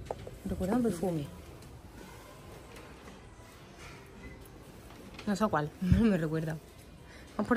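A young woman speaks animatedly close by.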